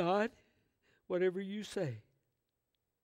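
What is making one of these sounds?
An elderly man speaks loudly and with emphasis through a microphone.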